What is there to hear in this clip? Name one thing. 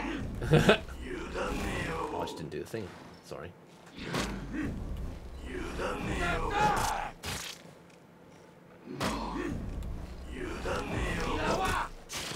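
Heavy weapons clash and strike in a fight.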